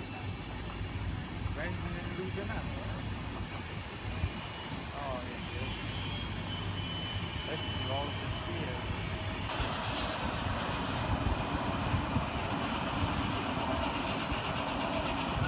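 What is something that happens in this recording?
A passenger train rolls past on the tracks with a low, steady rumble.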